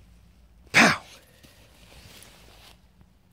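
A dog rolls over on dry grass with a soft rustle.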